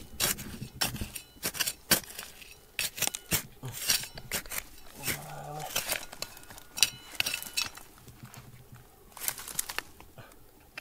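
A small hoe chops and scrapes into dry, stony soil.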